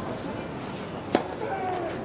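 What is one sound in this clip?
A tennis player serves a ball with a sharp racket hit.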